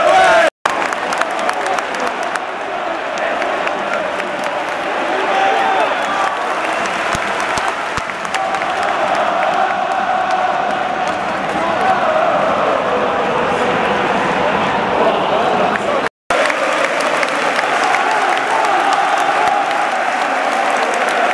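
A large stadium crowd sings and chants loudly.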